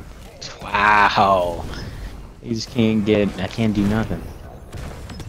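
A young man speaks excitedly into a close microphone.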